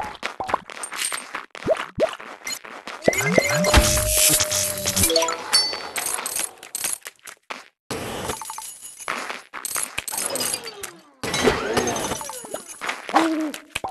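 Cartoon game sound effects pop, zap and chime in quick bursts.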